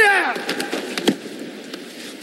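A board breaks with a sharp crack.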